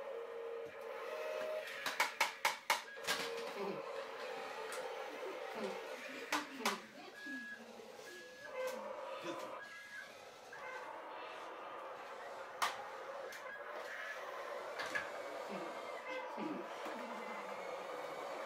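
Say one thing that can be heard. A plastic toy loader rolls across a tile floor.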